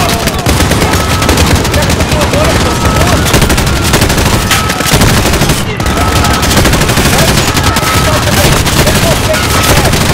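A heavy mounted machine gun fires long, pounding bursts.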